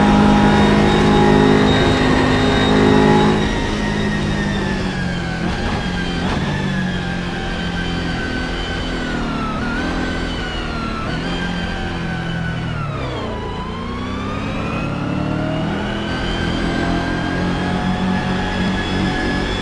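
A race car engine roars at high revs, its pitch rising and falling as the gears shift.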